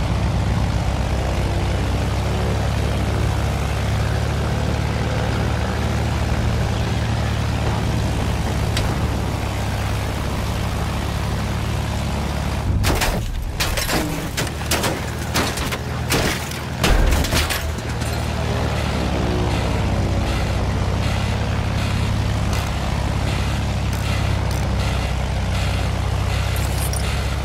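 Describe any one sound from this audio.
A propeller engine drones steadily throughout.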